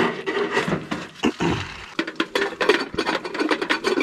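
A metal lid clinks onto a pot.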